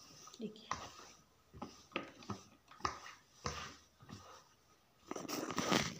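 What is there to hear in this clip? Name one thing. A sewing machine stitches through cloth.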